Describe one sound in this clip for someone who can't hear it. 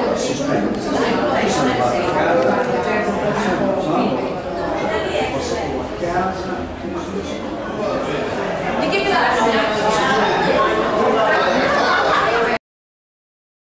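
A crowd of people chatter nearby in a busy room.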